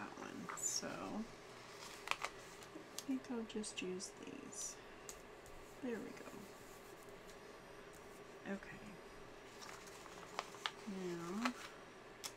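Stickers are peeled off a backing sheet with soft crinkling of paper.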